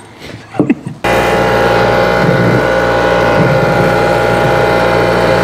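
A bench grinder hums steadily.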